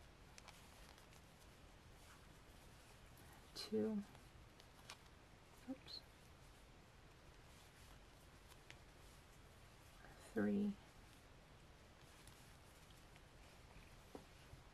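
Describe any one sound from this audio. Yarn rustles softly as a crochet hook pulls loops through stitches.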